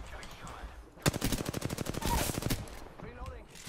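A rapid burst of gunfire rattles.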